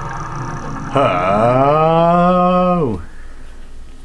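A warping sound swoops up and then drops sharply in pitch.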